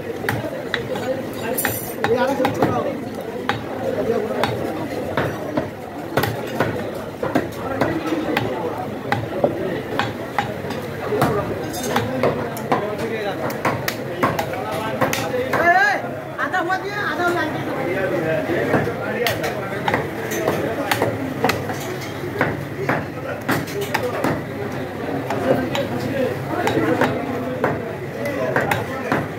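A cleaver chops through meat and bone on a wooden block with repeated sharp thuds.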